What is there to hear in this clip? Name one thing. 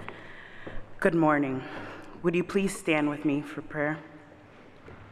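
A woman sings with a wavering voice in an echoing hall.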